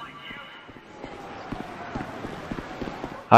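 Footsteps run quickly over wooden boards.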